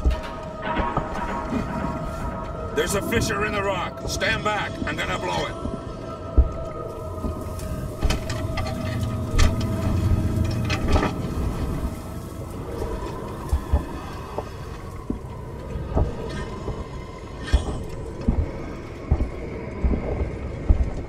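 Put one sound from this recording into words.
A small underwater vehicle's motor hums steadily.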